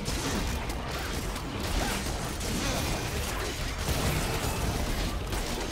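Video game spell effects and blows crackle and clash rapidly.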